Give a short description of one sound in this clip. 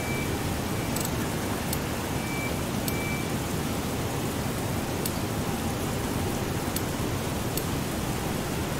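Short electronic menu clicks tick now and then.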